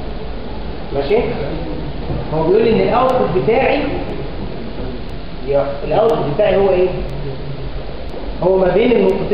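A man speaks loudly in an echoing room, as if lecturing.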